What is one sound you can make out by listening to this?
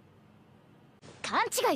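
A young man cries out in surprise.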